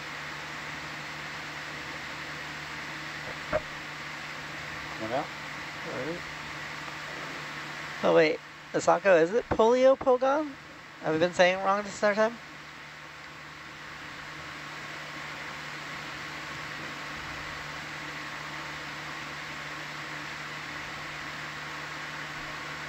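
A submersible vehicle's machinery hums steadily underwater.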